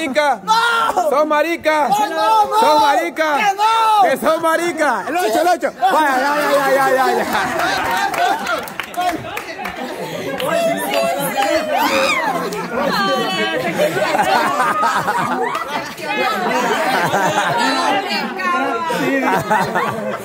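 A group of young women and men laugh and cheer.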